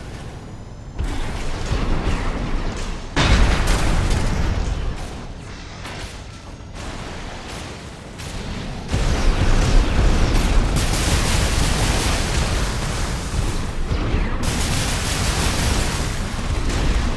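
Heavy gunfire and blasts boom and crackle.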